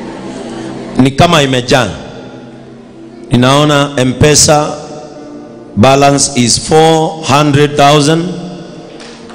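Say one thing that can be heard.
A man preaches loudly and with animation through a microphone and loudspeakers, echoing in a large space.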